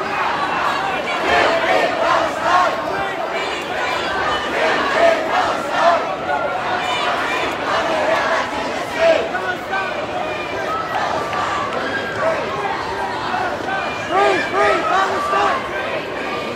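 A large crowd of men and women chants and shouts loudly outdoors.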